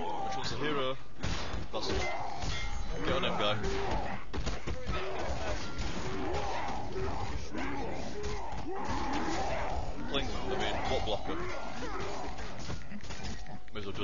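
Weapons clash and thud in a game battle.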